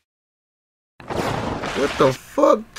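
Bottles burst with a loud blast.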